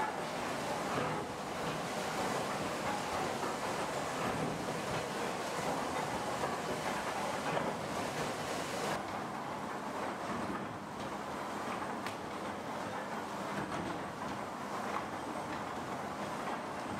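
A conveyor clatters as it carries blocks along.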